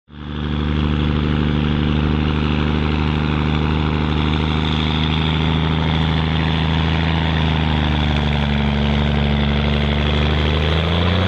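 A truck's diesel engine roars loudly at full power.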